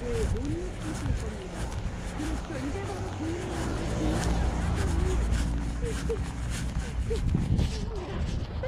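Skateboard wheels rumble steadily over rough asphalt.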